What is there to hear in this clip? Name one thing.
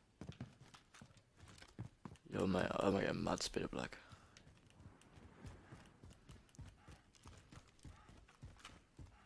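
Footsteps thud steadily across a hard floor indoors.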